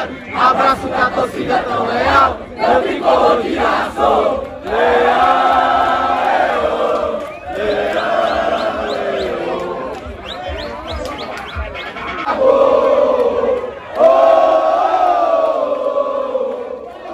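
A large crowd of football fans chants and sings outdoors.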